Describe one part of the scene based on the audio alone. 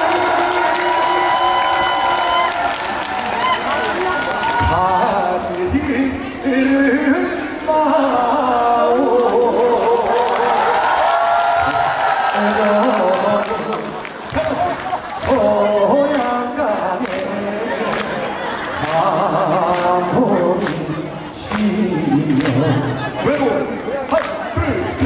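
Backing music plays loudly over loudspeakers.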